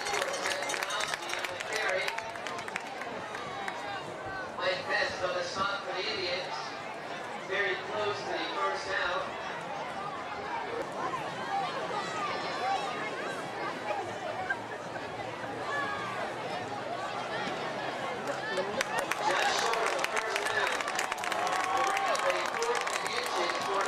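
A crowd of spectators chatters and murmurs outdoors.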